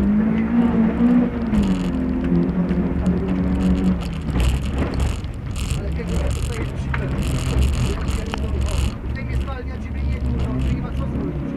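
A car engine revs loudly inside the cabin, rising and falling.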